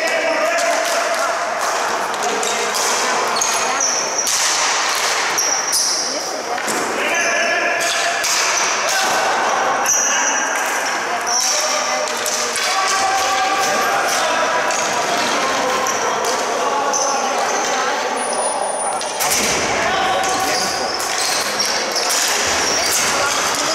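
Shoes squeak sharply on a hard floor.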